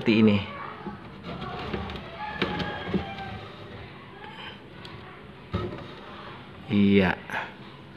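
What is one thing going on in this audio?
A plastic tray scrapes as it slides out of a wooden box.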